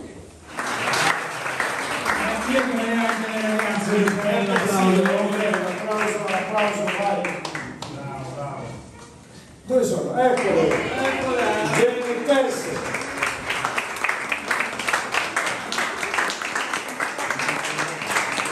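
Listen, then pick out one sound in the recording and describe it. A man sings through a microphone in an echoing hall.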